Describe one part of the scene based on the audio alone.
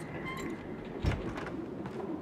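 A wooden door bangs open.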